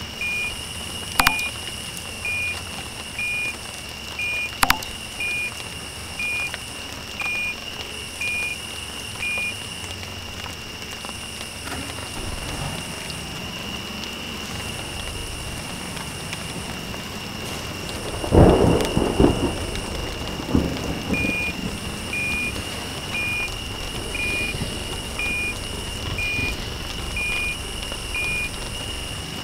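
A truck's reversing alarm beeps at an even pace.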